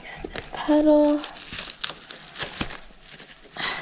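Bubble wrap crinkles and rustles as hands handle it.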